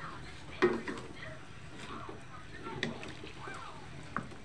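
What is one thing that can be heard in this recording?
A wooden spatula stirs chunks of food through thick sauce in a metal wok.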